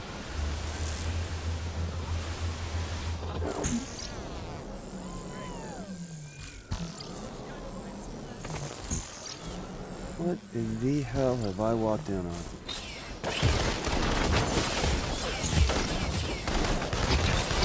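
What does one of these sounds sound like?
Crackling energy blasts whoosh and sizzle.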